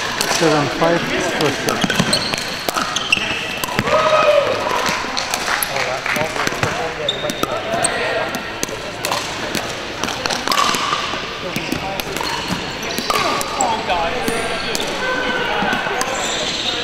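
Men and women call out to each other across the court.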